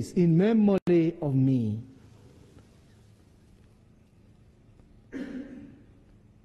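A man sings a prayer through a microphone.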